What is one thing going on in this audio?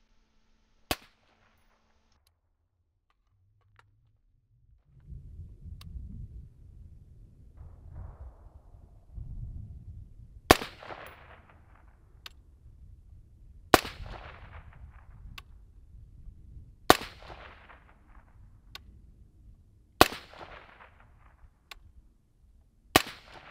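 A suppressed rifle fires single shots outdoors, each with a short echo.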